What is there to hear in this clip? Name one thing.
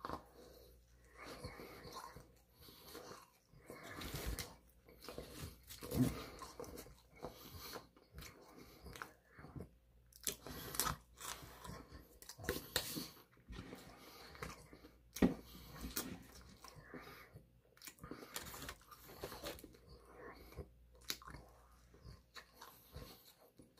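A young man chews and eats noisily.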